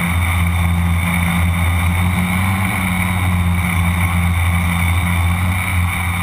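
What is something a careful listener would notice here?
A drone's propellers buzz and whine steadily close by.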